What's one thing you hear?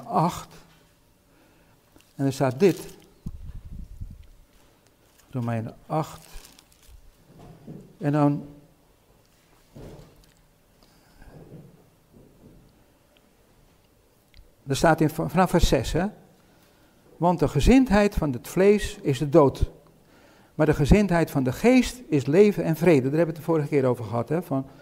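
An elderly man reads aloud calmly, close by.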